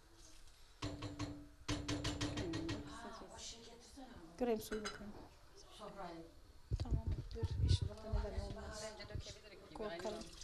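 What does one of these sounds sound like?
A woman speaks calmly into a microphone nearby.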